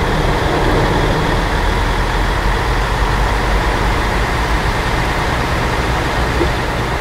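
A bus engine hums steadily as it drives through water.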